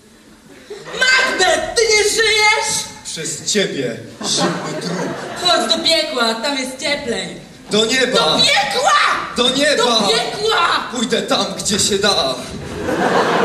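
A woman speaks loudly and dramatically in a large hall.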